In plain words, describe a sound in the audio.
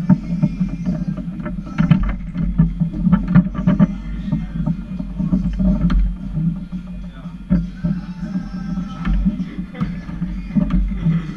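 Foosball rods clack and rattle as players spin and slide them.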